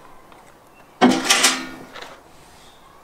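A metal tray clatters down onto a wooden table.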